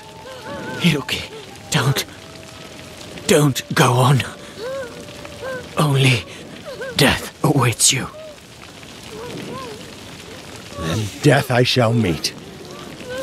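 A man shouts in short bursts at a distance.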